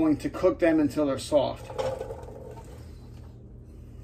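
Chopped vegetables tip into a pan with a soft clatter.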